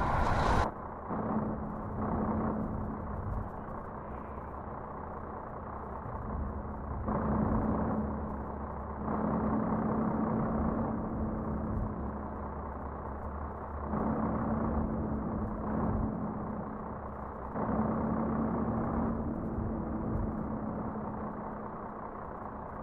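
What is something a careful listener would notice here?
A truck engine hums steadily, swelling louder at times as it accelerates.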